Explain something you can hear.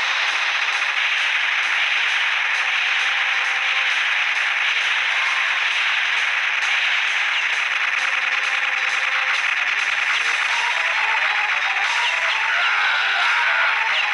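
Rapid gunfire rattles continuously in an arcade game.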